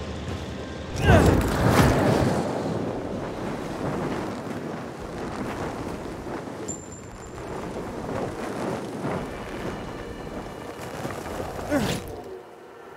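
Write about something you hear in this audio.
Wind rushes loudly past during a fast glide through the air.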